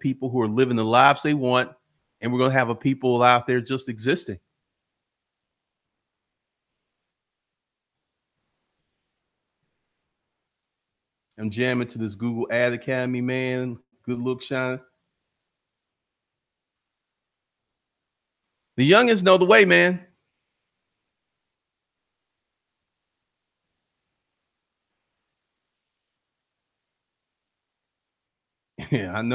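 A man speaks with animation into a close microphone, in bursts with long silences.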